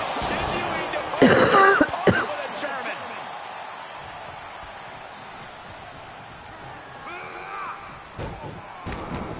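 A crowd cheers and murmurs in a large arena.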